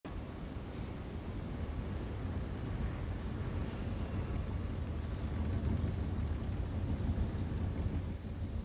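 A car engine idles with a deep, steady rumble.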